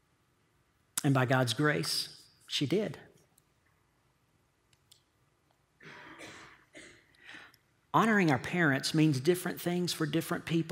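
A middle-aged man speaks with emphasis through a headset microphone.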